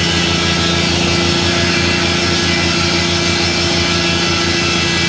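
A sawmill engine drones steadily with a throbbing pulse.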